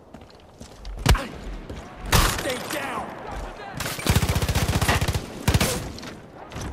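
Gunshots ring out loudly, some in quick bursts.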